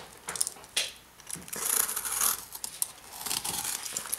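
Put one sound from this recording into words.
A knife slices through packing tape.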